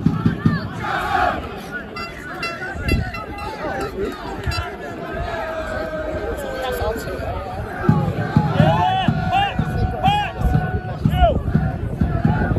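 Football players shout to each other across the pitch.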